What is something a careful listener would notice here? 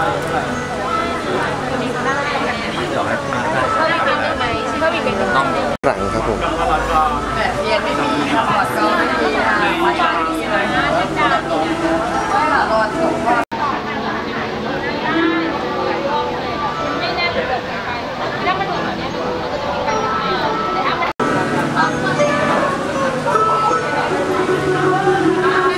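A crowd of young men and women chatter and talk nearby.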